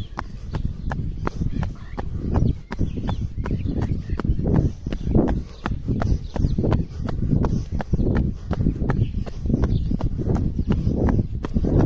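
Sneakers slap on concrete in quick running steps.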